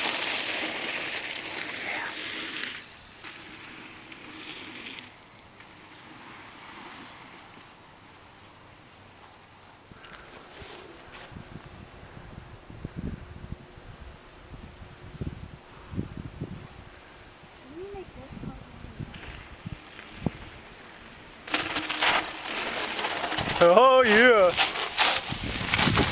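Bicycle tyres crunch and roll over loose gravel close by.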